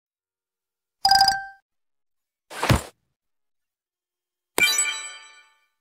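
Short electronic game chimes ring out a few times.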